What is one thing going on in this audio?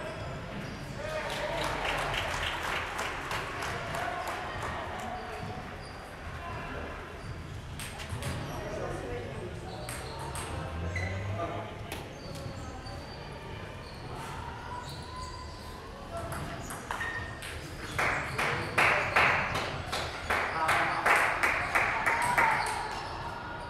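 A ping-pong ball clicks back and forth off paddles and a table in an echoing hall.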